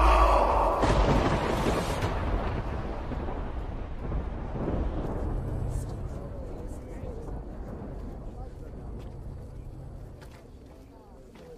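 Thunder rumbles deeply and slowly fades.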